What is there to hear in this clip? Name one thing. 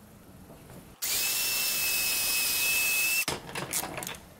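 A circular saw whines loudly as it cuts through wood.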